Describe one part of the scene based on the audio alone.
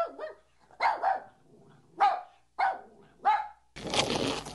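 A puppy barks in short yelps.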